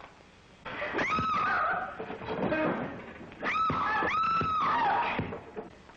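A woman screams loudly.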